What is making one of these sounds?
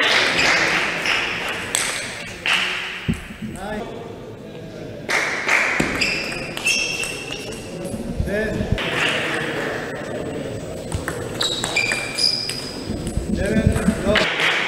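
A table tennis ball clicks off paddles and the table in a rally.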